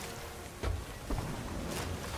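Ocean waves roll and crash.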